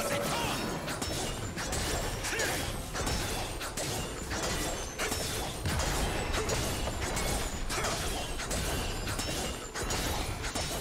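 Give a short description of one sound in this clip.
Fantasy battle sound effects of spell blasts and weapon hits crackle rapidly.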